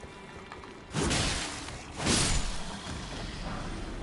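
A blade swings and strikes with a heavy thud.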